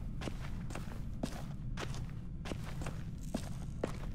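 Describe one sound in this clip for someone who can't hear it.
Footsteps tread slowly on a wooden floor.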